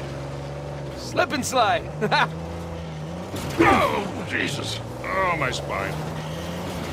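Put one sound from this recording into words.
An older man groans and complains.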